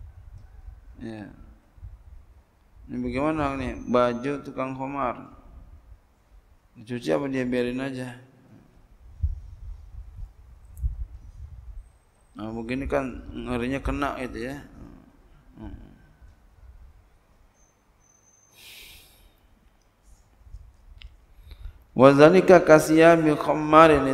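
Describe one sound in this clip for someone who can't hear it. A man speaks slowly and calmly into a microphone, with long pauses.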